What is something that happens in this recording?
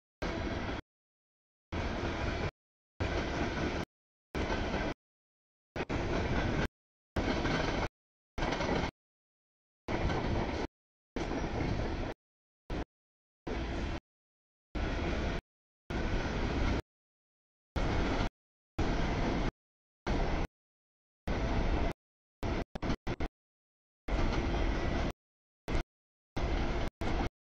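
A long freight train rumbles and clatters past on the tracks.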